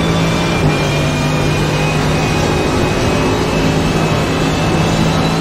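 A racing car engine roars steadily at high speed in top gear.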